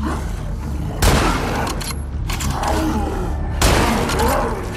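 A rifle fires loudly.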